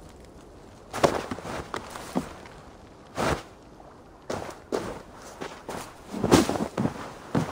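Blows land with sharp thuds.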